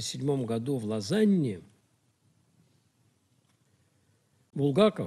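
An elderly man speaks calmly into a nearby microphone, pausing between phrases.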